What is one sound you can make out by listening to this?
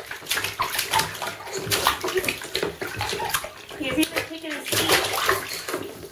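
Water splashes in a small tub.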